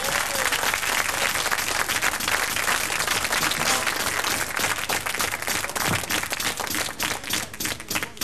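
A large crowd claps hands.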